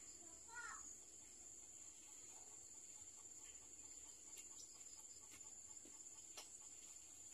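Scissors snip through thin plant roots with small, crisp clicks.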